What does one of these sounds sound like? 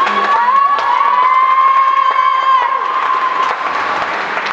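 A woman sings or hums a long steady note, echoing in a large hall.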